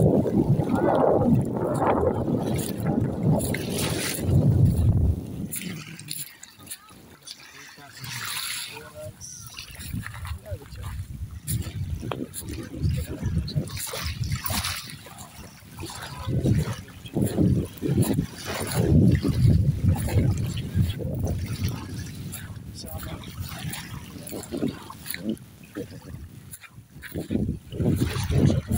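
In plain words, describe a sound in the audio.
Small waves lap gently at a sandy shore, outdoors in gusty wind.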